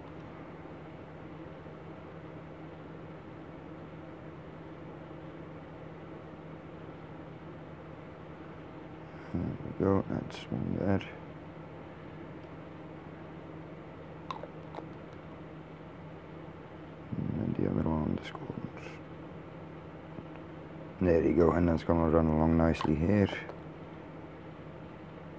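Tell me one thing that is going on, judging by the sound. A plastic bottle cap clicks softly as it is handled.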